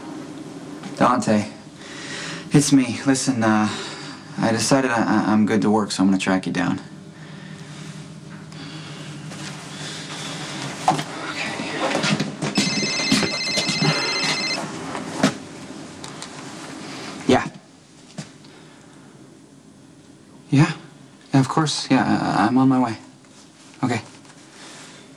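A man speaks into a phone in a low, tense voice.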